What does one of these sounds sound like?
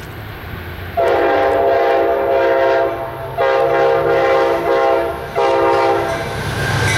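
A train horn blows loud, long blasts close by.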